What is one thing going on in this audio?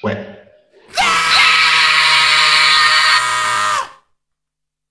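A young man shouts loudly through an online call.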